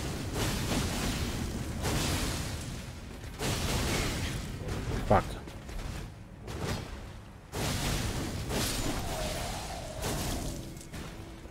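Blades swoosh and slash in a fierce fight.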